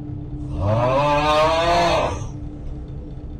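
A man lets out a long, weary groan up close.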